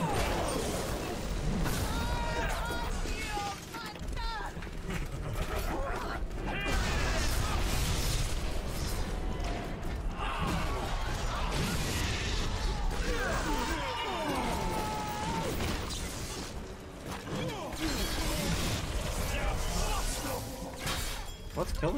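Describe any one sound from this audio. Guns fire in sharp bangs.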